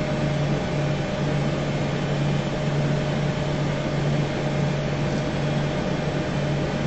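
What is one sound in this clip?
Jet engines whine and hum steadily at idle.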